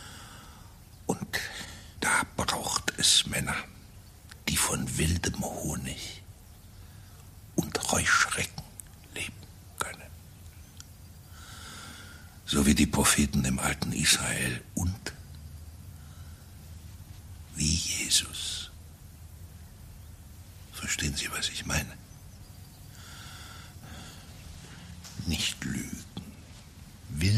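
A middle-aged man speaks calmly and quietly, close by.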